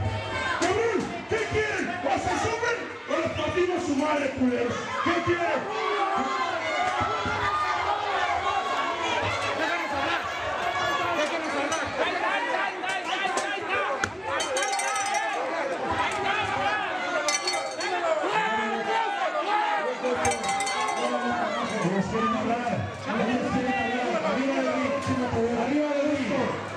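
A crowd of men and women shouts and cheers loudly around the listener.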